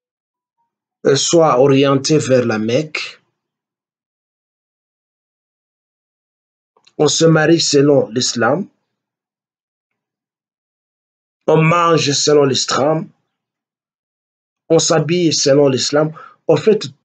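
An elderly man speaks with animation close to a microphone, in short bursts with pauses.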